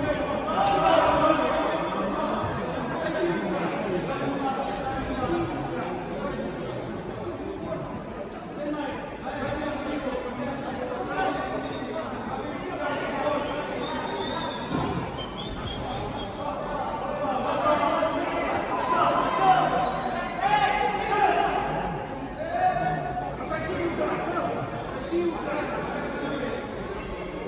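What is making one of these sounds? Men shout loudly from ringside in an echoing hall.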